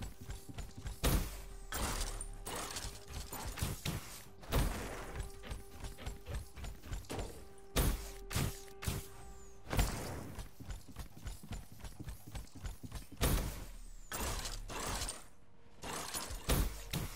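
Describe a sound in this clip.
Air whooshes loudly during leaps.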